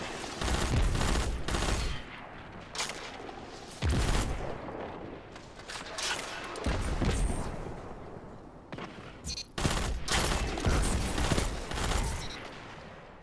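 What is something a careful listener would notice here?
Video game gunfire fires in bursts.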